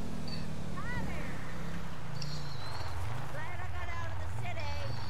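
Tyres skid and squeal on loose dirt.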